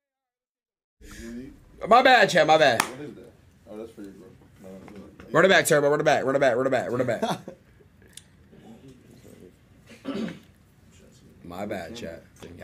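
Several young men talk and laugh.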